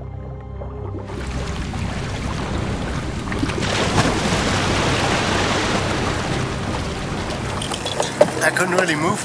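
Sea lions splash noisily in choppy water.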